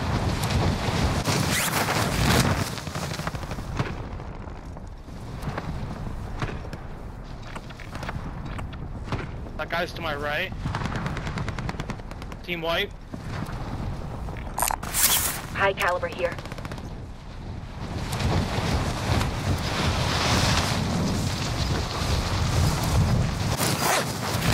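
Wind rushes past a skydiver in freefall.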